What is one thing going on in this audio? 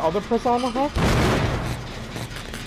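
A generator engine bursts with a loud bang and hiss.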